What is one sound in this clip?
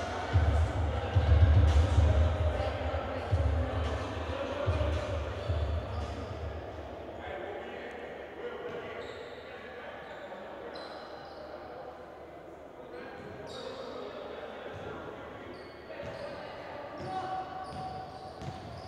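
A basketball bounces on a hard floor with dull thumps.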